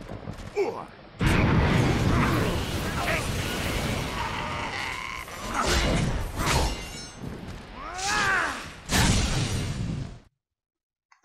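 An axe strikes and slashes with heavy thuds.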